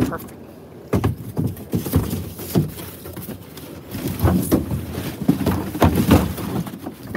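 Cardboard boxes scrape and thud as they are dropped into a plastic bin.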